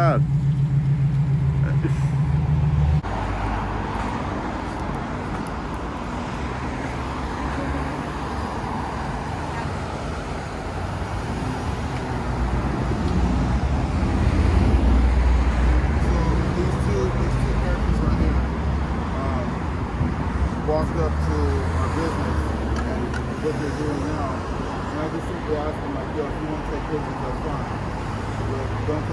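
Traffic hums along a busy street outdoors.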